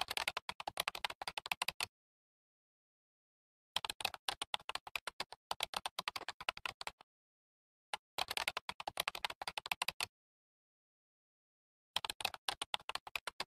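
Keys on a keyboard click rapidly in bursts of typing.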